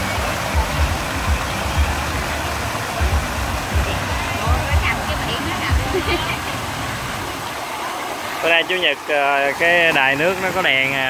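Water from a fountain splashes and patters steadily nearby.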